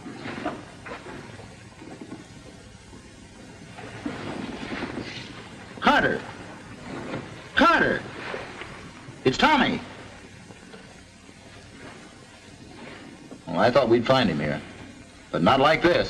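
A man speaks in a low, urgent voice close by.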